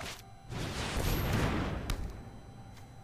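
A magical whooshing effect sweeps and shimmers.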